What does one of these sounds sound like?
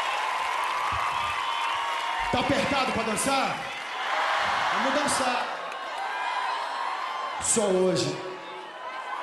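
A man speaks into a microphone, amplified through loudspeakers in a large hall.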